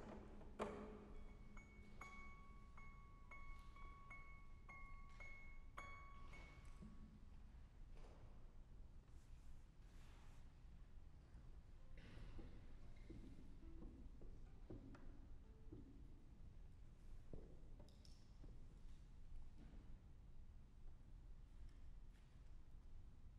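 A harp is plucked softly, single notes ringing out in an echoing hall.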